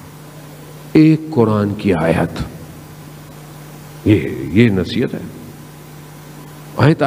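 A man speaks with emotion into a microphone, in short bursts with pauses.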